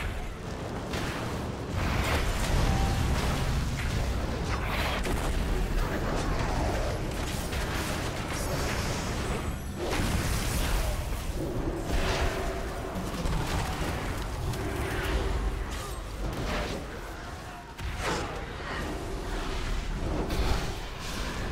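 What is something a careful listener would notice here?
Explosions and spell blasts boom in a game battle.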